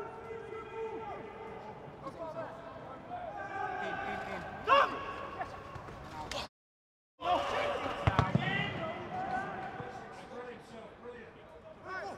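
Men shout to one another across a football pitch in an empty stadium.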